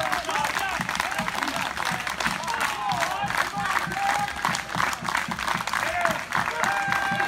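A crowd claps in a steady rhythm outdoors.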